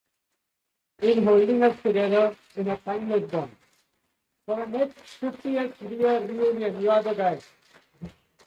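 A man speaks into a microphone, announcing over a loudspeaker.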